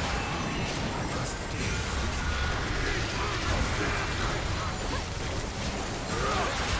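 Magic spells whoosh and crackle in a fast, busy battle.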